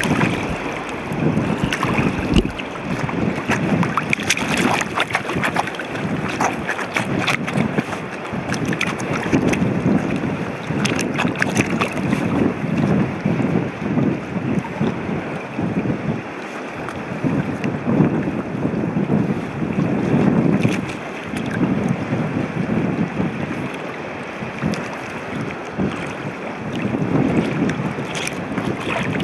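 Shallow water ripples and trickles over rock.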